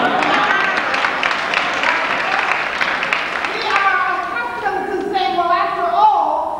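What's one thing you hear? An adult woman speaks warmly with animation through a microphone in a large echoing hall.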